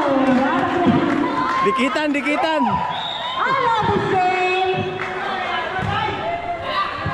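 Children shout and call out loudly in a large echoing space.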